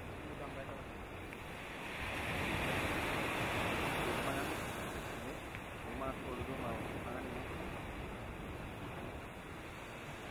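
A volcano rumbles as it erupts.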